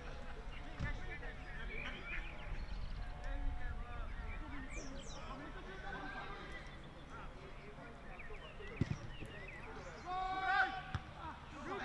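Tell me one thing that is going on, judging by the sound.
Men shout and call out across an open field outdoors.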